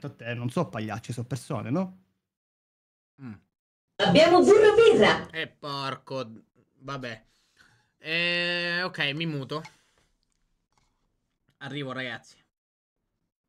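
A man talks with animation into a close microphone, in short bursts with pauses.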